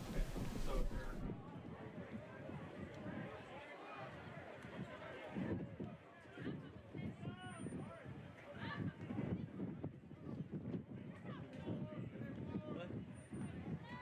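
A crowd murmurs faintly outdoors.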